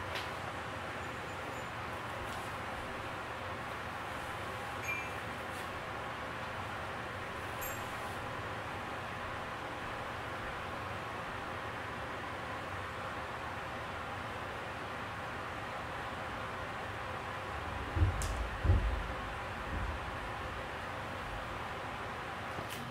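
Hair rustles softly as a woman ties it up.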